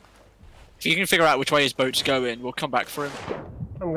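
A body splashes into the sea.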